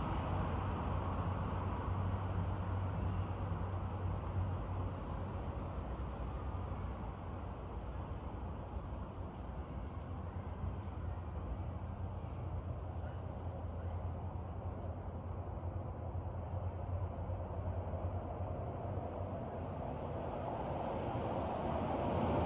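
Wind rustles steadily through tree leaves outdoors.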